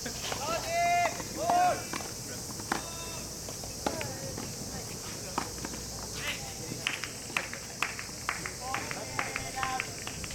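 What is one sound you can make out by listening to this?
A tennis ball is struck by rackets and bounces on a hard court outdoors.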